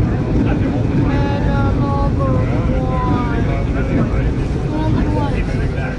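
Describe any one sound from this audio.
Train wheels squeal on the rails as the train slows.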